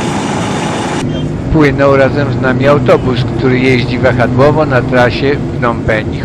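A bus engine rumbles close by.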